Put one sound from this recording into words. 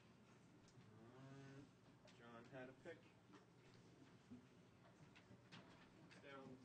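A man talks casually nearby.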